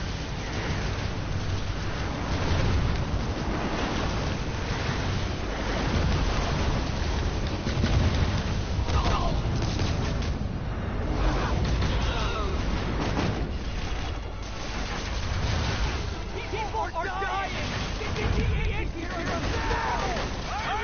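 Explosions boom with heavy rumbling.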